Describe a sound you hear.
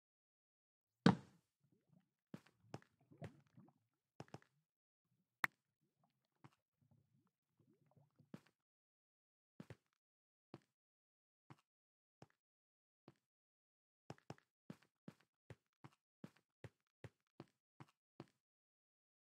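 Footsteps tread on stone at a steady pace.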